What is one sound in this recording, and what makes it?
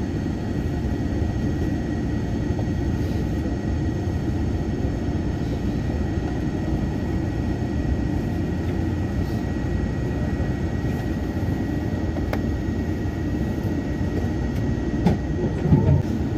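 A train rumbles steadily along the tracks and slows as it pulls into a station.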